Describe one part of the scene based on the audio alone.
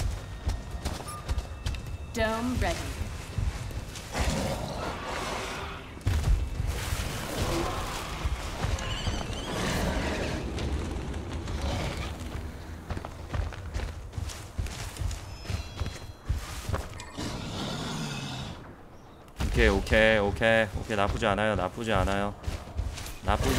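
A large beast's heavy footsteps thud along the ground.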